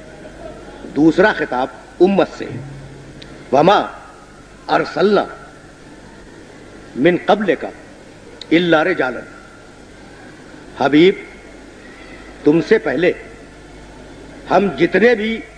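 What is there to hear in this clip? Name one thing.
An elderly man speaks slowly and deliberately into a microphone, in short bursts with pauses.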